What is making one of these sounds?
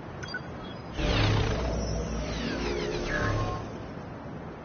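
A shimmering magical whoosh swells and fades.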